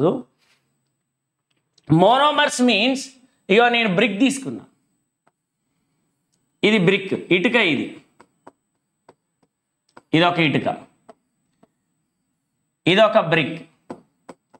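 A man speaks clearly into a close microphone, explaining in short bursts with pauses.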